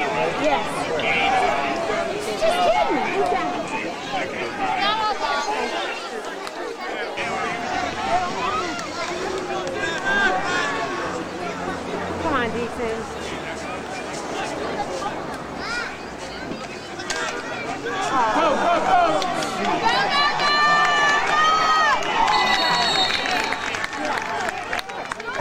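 A crowd of spectators talks and shouts outdoors.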